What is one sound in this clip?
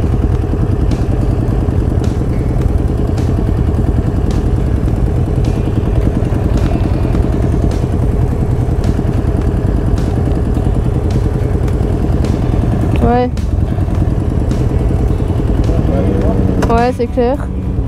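A motorcycle engine idles with a steady, throbbing rumble close by.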